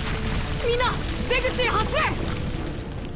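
A young man shouts urgently.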